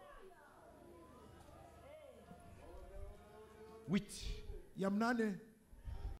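A man speaks with emotion into a microphone, heard through loudspeakers.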